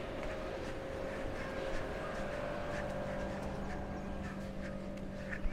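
A cooling unit hums steadily nearby.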